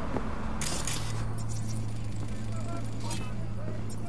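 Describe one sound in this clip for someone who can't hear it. Footsteps tap on pavement as a woman walks by.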